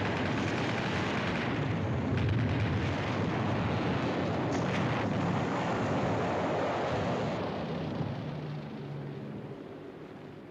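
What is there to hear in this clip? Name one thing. An explosion roars close by and the rumble slowly dies away.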